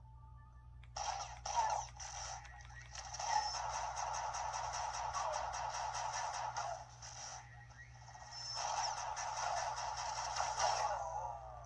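Busy game music and blasts play loudly from a small console speaker.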